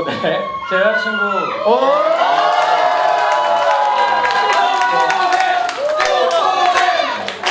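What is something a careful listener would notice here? A young man sings loudly through a microphone in an echoing hall.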